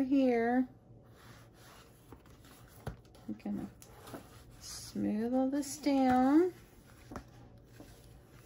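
Paper pages in a card album rustle as they are leafed through and pressed flat.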